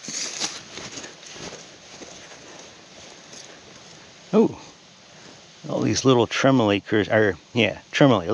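A gloved hand rustles through loose soil.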